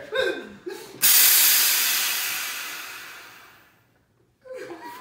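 A soda maker hisses loudly as it pumps gas into a bottle, then fades.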